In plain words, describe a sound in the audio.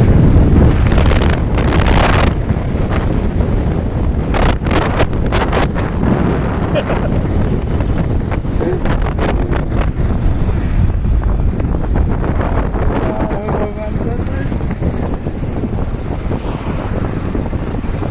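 Tyres rumble over a rough, patched road.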